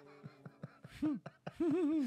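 A man laughs near a microphone.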